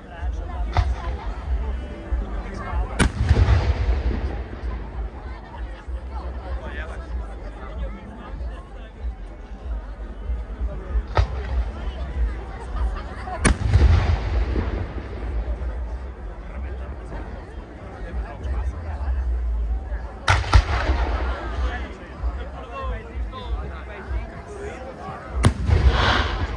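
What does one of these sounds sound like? Fireworks explode with loud, sharp booms that echo outdoors.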